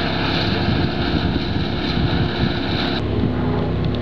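A wood chipper engine roars steadily.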